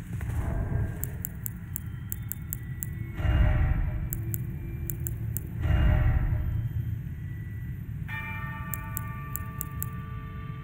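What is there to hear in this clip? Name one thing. Short menu clicks tick in quick bursts.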